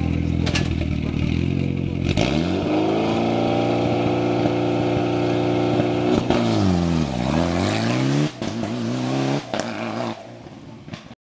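A car engine revs loudly and changes gear as the car speeds away.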